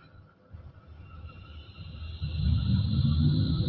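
A tram's electric motor whines, rising as it pulls away.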